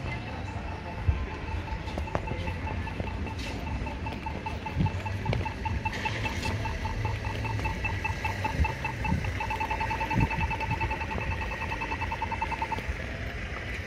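A pedestrian crossing signal ticks steadily, then speeds up into rapid beeps before stopping.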